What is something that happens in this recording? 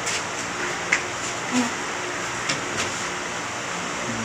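Someone sits down heavily on a creaking bed.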